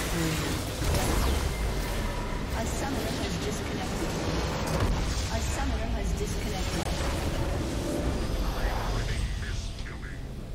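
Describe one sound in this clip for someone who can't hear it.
Game spell effects clash and crackle in a busy battle.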